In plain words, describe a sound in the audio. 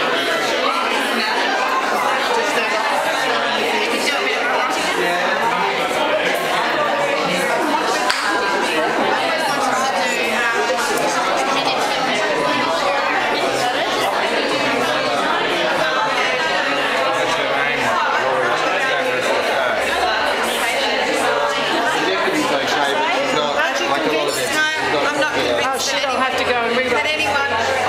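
A crowd of men and women chatter loudly all around, nearby.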